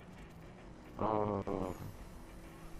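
A car's boost fires with a sudden loud roar.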